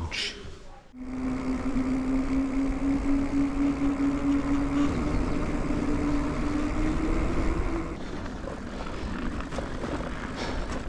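Bicycle tyres roll over a gravel path.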